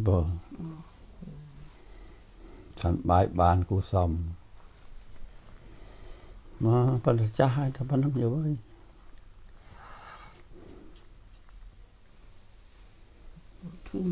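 An elderly man speaks calmly and slowly, close by.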